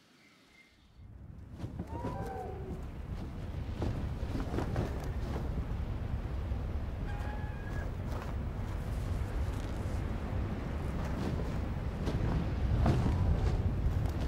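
Large wings flap heavily overhead.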